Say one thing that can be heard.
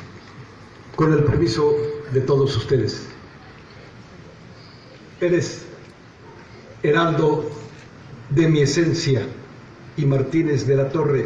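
A man speaks formally over a loudspeaker, in short phrases with pauses.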